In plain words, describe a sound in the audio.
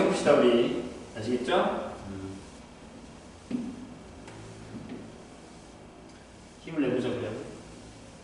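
An eraser rubs across a chalkboard.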